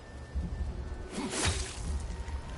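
An axe strikes with a sharp crack.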